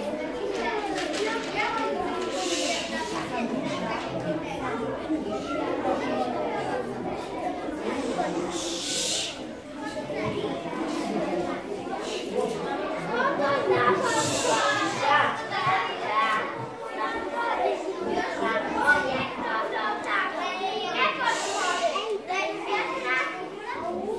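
Young children talk and sing in an echoing room.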